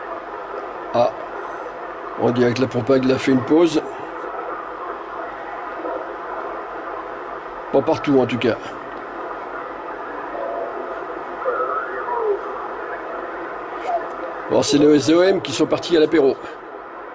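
Short bursts of sound break through a radio speaker between stations.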